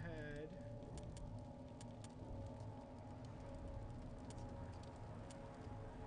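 Soft menu clicks tick now and then as options are selected.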